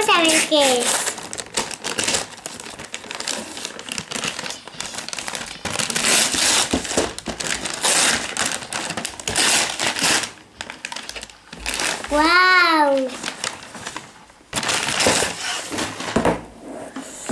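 Wrapping paper rustles and tears as it is ripped open.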